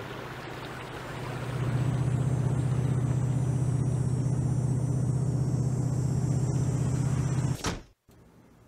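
A car engine hums steadily, then cuts off.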